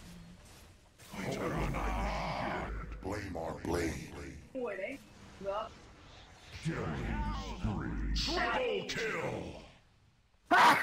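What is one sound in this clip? A man talks excitedly into a close microphone.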